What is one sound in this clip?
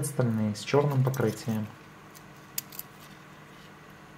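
A metal watch bracelet clicks softly as hands handle it.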